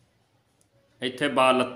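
A man speaks calmly and clearly, close to a microphone, in short spaced phrases.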